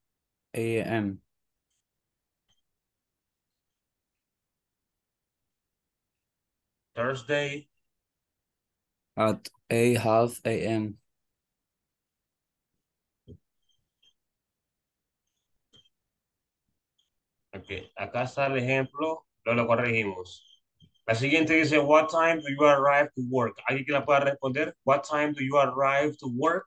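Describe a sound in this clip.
A young man speaks calmly into a microphone, heard as if through an online call.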